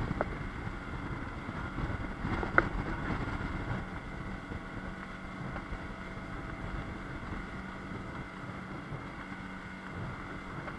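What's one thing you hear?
Water rushes and splashes against a speeding boat's hull.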